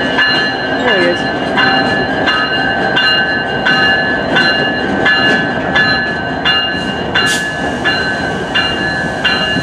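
A diesel locomotive rumbles as it rolls slowly past.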